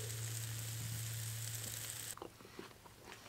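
Meat sizzles loudly on a hot grill.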